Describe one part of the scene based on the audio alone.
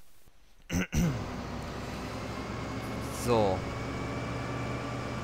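A combine harvester engine starts up and hums steadily.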